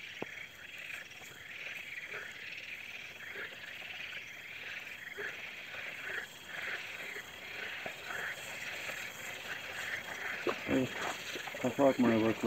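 A small object splashes into water nearby.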